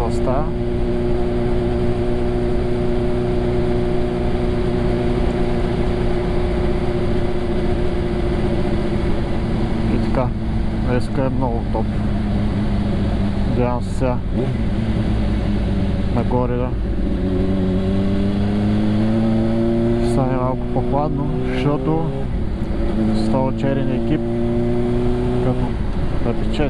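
A motorcycle engine hums steadily up close, its pitch rising and falling as the rider shifts gears.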